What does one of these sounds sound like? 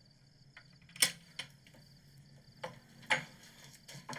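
A door latch clicks sharply.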